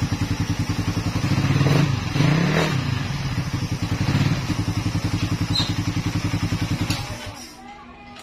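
A motorcycle engine idles loudly and revs in bursts.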